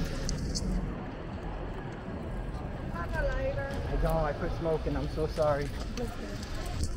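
A stroller's wheels roll and rattle past on the pavement.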